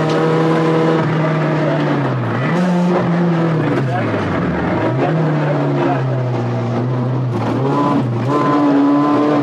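A rally car engine drops in pitch through gear changes and climbs again.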